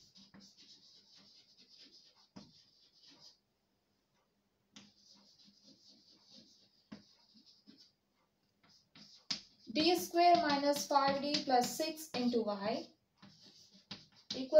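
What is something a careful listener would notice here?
Chalk scratches and taps on a blackboard.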